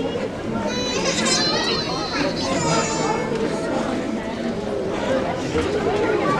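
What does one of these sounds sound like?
An audience of adults and children chatters and murmurs in a large echoing hall.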